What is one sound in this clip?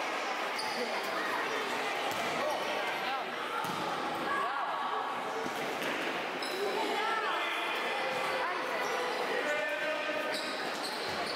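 Children shout in an echoing indoor hall.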